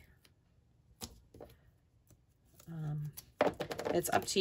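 Paper rustles and taps against a table.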